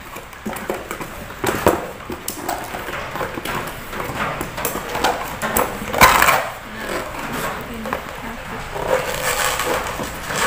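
Cardboard rustles and scrapes as a box is handled and torn apart.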